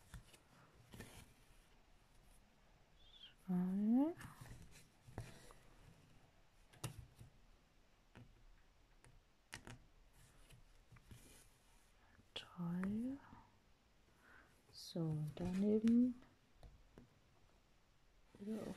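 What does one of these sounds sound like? Thread rasps softly as it is pulled through stiff fabric.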